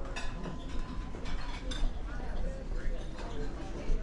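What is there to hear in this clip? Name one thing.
Dishes clink nearby.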